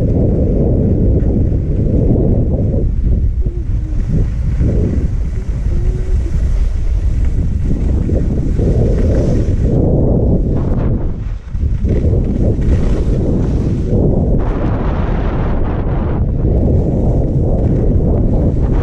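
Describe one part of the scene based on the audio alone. Wind rushes loudly past, roaring and buffeting steadily.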